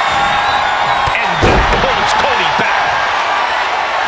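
A heavy body slams onto a wrestling ring mat with a thud.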